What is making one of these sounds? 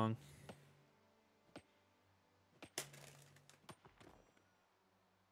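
Game sound effects click and thump.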